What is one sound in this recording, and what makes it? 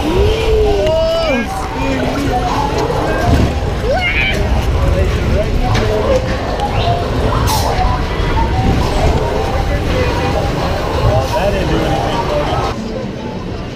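Riders shout and scream loudly.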